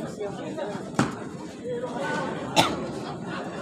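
A ball thuds sharply off a player's foot.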